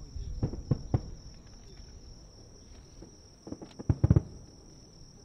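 Fireworks boom in the distance outdoors.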